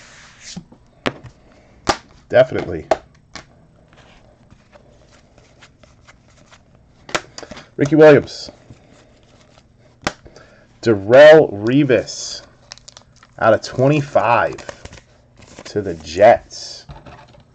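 Trading cards slide and click as hands shuffle them.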